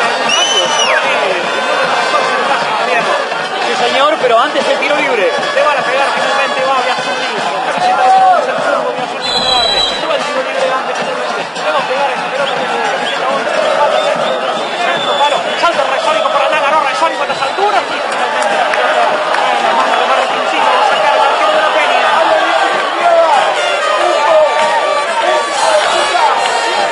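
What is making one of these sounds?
A large crowd cheers, chants and whistles outdoors.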